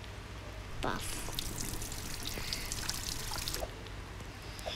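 Water pours from a tap into a bathtub.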